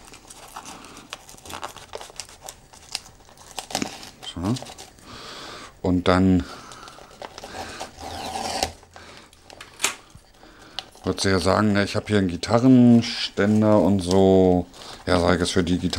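Wrapping paper crinkles and rustles as it is folded.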